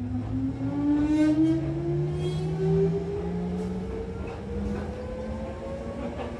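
A train rumbles and rattles along the tracks.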